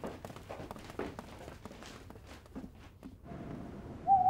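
Footsteps walk across a wooden floor.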